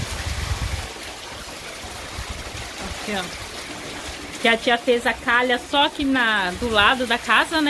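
Heavy rain pours down outdoors with a steady hiss.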